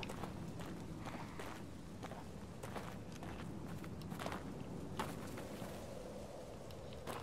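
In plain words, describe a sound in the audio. Footsteps crunch slowly over rough ground.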